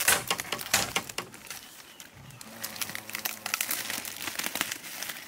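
Plastic bags crinkle and rustle close by.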